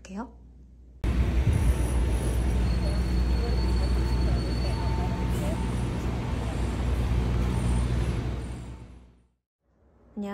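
Sneakers step on pavement outdoors.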